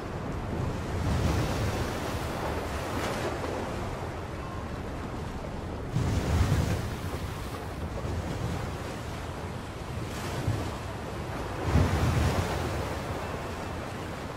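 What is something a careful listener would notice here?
Rough waves surge and crash, with a strong wind blowing outdoors.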